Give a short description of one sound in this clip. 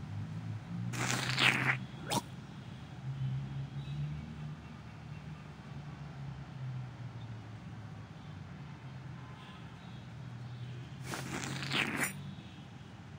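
A weapon swishes sharply through the air.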